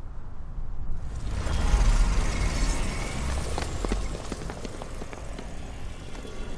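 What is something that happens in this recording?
A deep rumbling whoosh swells and fades.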